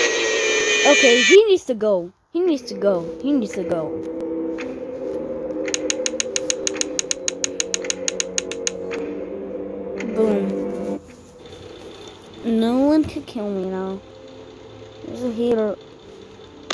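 A child speaks with animation.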